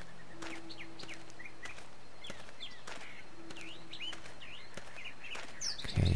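A man walks with soft footsteps on grass.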